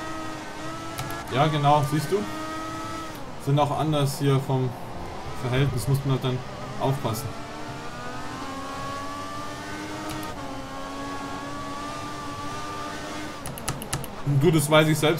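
A racing car engine whines and revs up and down as gears shift.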